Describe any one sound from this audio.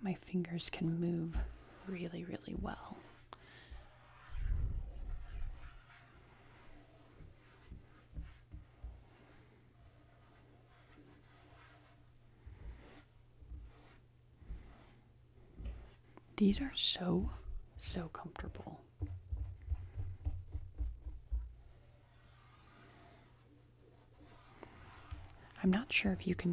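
A woman speaks softly close to a microphone.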